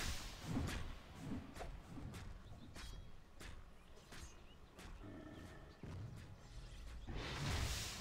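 Sharp hits and magic blasts crackle in a video game battle.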